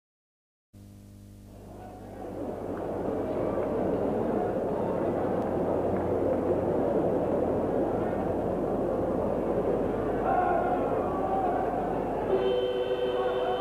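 A large stadium crowd roars, swelling louder and then holding steady.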